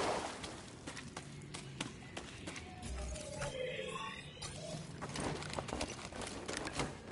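Footsteps tread on soft ground.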